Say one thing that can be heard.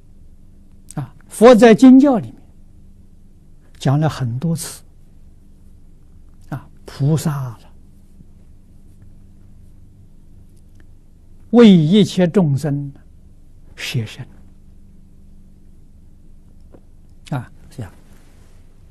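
An elderly man speaks calmly close to a microphone, in short phrases with long pauses.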